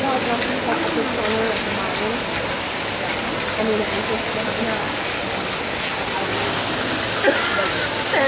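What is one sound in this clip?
Young women talk quietly nearby.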